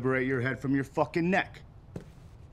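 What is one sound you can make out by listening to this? A man speaks forcefully nearby.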